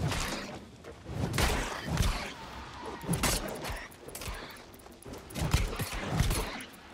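Heavy weapon blows land on a creature in quick bursts.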